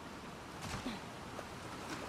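Water rushes steadily over a nearby waterfall.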